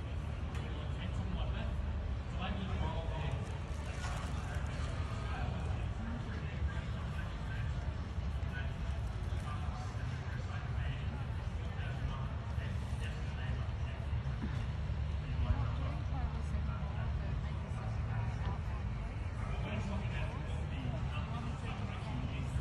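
A crowd of people chatter in the distance.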